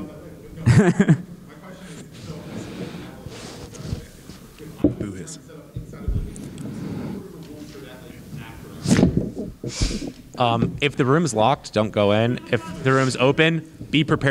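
A man speaks with animation into a microphone, heard over loudspeakers in a large room.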